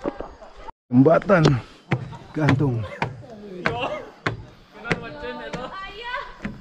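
Footsteps knock on wooden stairs and boards.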